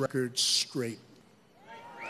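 A man speaks forcefully into a microphone over a loudspeaker.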